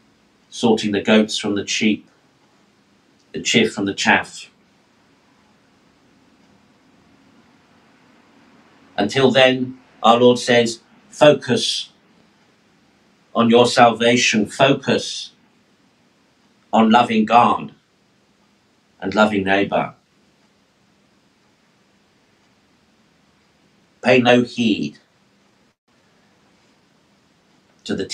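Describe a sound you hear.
A middle-aged man speaks in short, measured phrases with pauses, close to a microphone.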